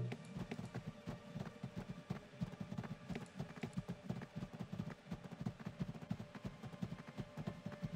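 Rapid thumps and clicks of fighting sounds patter on without a break.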